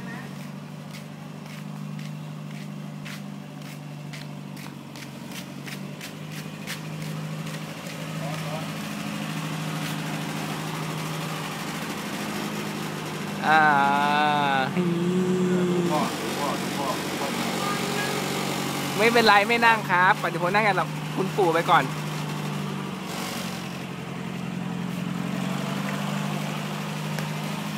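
An old jeep engine idles with a steady low rumble.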